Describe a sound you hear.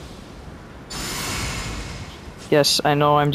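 A magic spell bursts with a bright, shimmering whoosh.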